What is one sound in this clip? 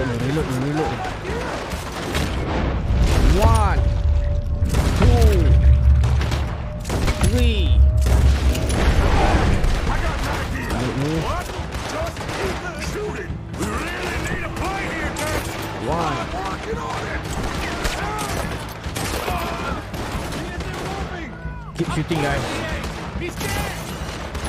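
Gunshots crack rapidly and repeatedly.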